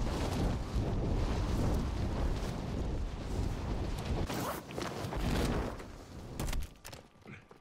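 Wind rushes loudly past a falling parachutist.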